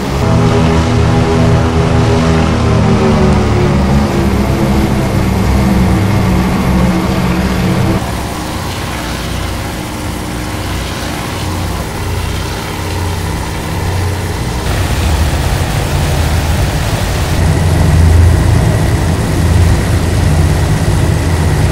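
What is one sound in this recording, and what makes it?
Aircraft engines drone loudly and steadily.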